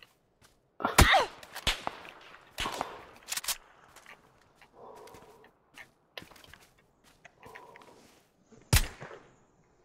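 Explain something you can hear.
A rifle fires sharp, loud shots that echo across open ground.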